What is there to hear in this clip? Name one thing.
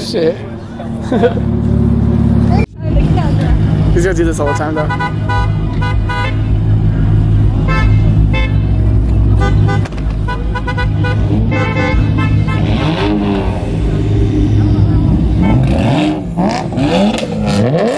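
Car engines rumble loudly at idle nearby.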